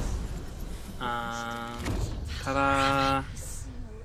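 A magical tone rings out with a bright, humming chime.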